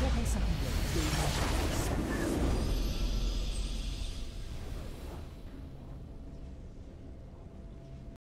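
A triumphant victory fanfare swells and slowly fades.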